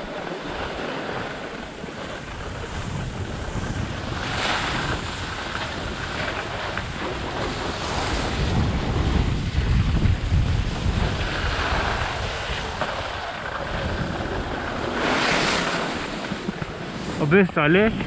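Snowboards scrape and hiss over packed snow.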